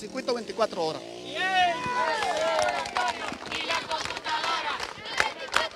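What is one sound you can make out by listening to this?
A crowd shouts and chants together outdoors.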